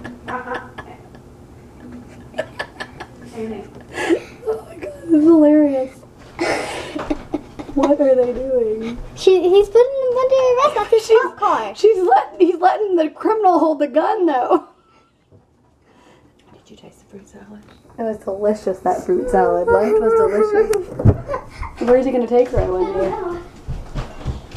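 Young children talk excitedly nearby.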